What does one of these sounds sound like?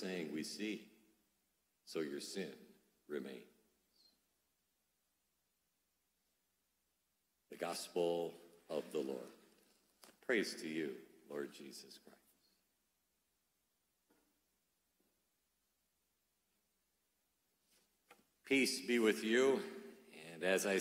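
A man speaks calmly into a microphone, in pauses.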